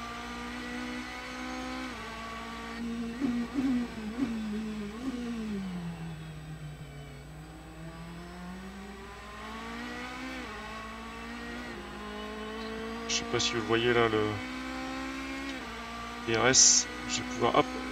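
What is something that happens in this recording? A racing car engine roars steadily, rising and falling in pitch as it shifts gears.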